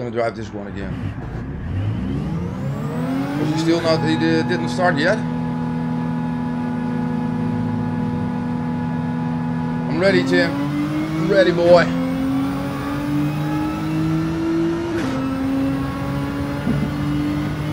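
A racing car engine revs up and then drones steadily.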